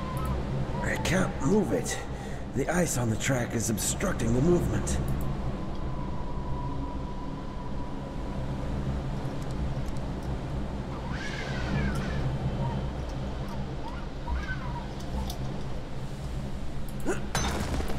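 Wind blows steadily through a snowstorm.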